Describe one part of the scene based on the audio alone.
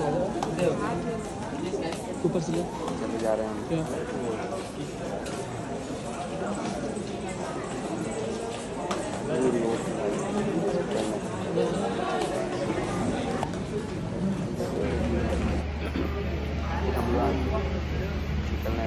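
A crowd of men talks and murmurs in an echoing corridor.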